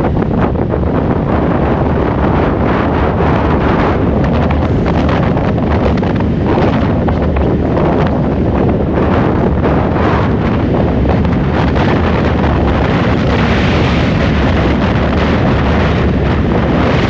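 Tyres hum steadily on a paved road.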